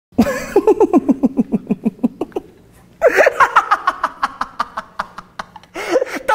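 A young man laughs loudly in rapid bursts close to a microphone.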